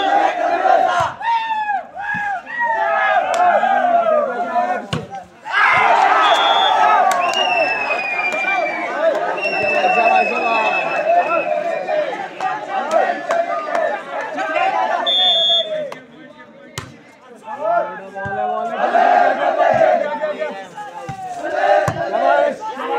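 A volleyball is struck with a thump.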